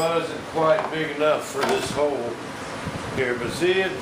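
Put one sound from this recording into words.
A plastic shell knocks and scrapes against a table.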